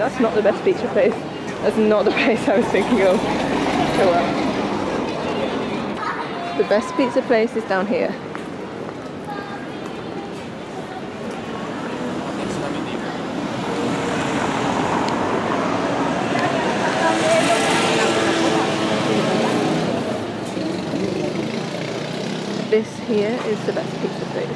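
Footsteps tap on stone pavement.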